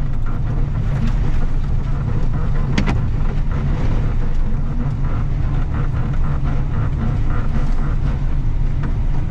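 Snow and slush scrape and crunch under tyres.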